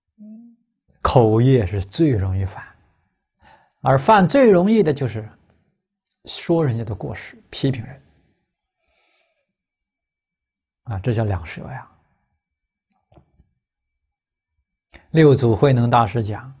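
A middle-aged man speaks calmly and slowly into a close microphone, with pauses.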